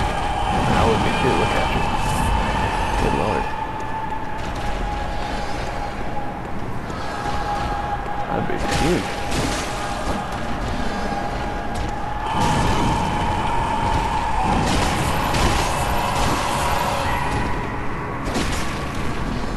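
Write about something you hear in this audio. Blades slash and strike with heavy impacts.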